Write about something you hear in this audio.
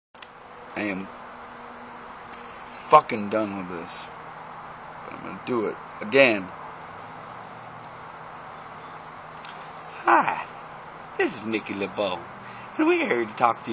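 A man speaks calmly and close up, in short bursts with pauses.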